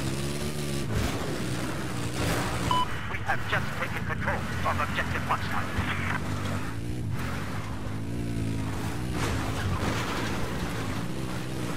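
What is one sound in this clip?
A quad bike engine drones and revs up and down.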